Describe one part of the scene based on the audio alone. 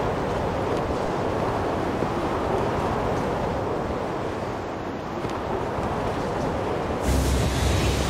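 Wind rushes steadily past during a glide.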